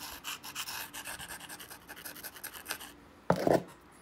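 An antler tool scrapes rapidly along the edge of a stone.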